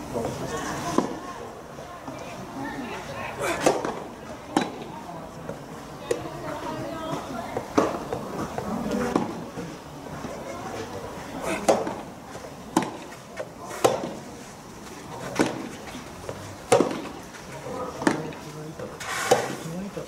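Tennis balls pop off rackets in a steady rally, outdoors.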